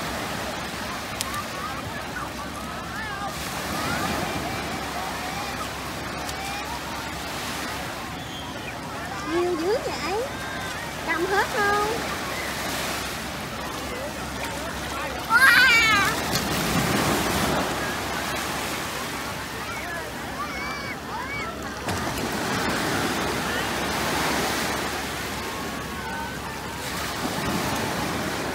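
Small waves wash softly onto a sandy shore.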